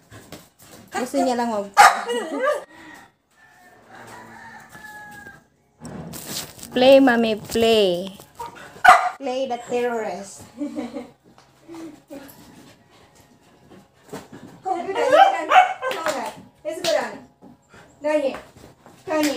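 A woman talks close by in a high, sing-song voice to a dog.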